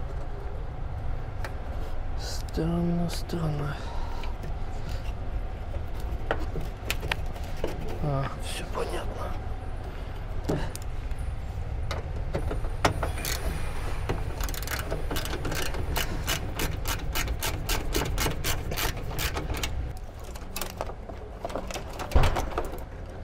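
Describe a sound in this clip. Plastic parts click and rattle as a man pulls at a car dashboard.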